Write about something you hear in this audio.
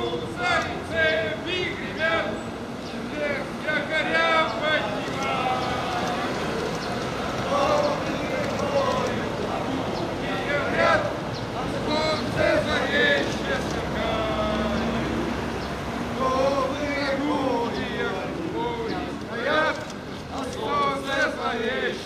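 A crowd of men talk and chatter outdoors.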